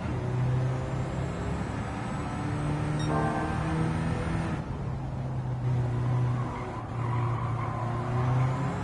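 A car engine roars steadily, its pitch climbing and dropping with gear changes.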